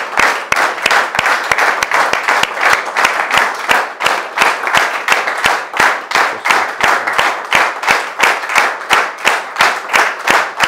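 An audience applauds in a steady, rhythmic beat.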